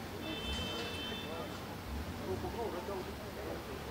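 A crowd of people chatters on a busy street.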